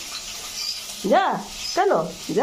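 A small dog whines in short high-pitched yelps.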